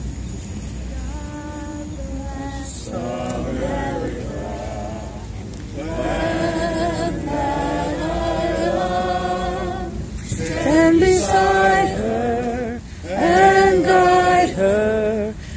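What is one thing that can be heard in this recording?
A young girl sings through a loudspeaker outdoors.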